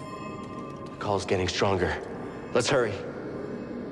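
A young man speaks urgently.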